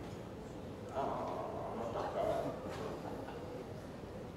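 A young man speaks calmly into a microphone, heard through loudspeakers in a large hall.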